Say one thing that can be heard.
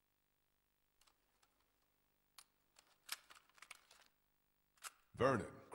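Small plastic clicks and rattles come from a camcorder being handled.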